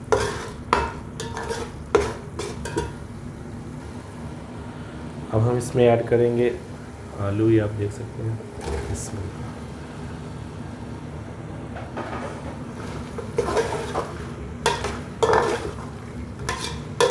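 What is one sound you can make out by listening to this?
Oil sizzles and bubbles in a pot.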